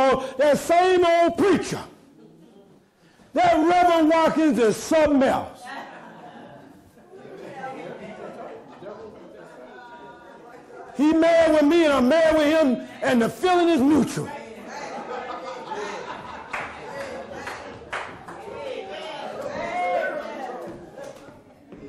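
A man preaches with animation through a microphone and loudspeakers, in a large echoing room.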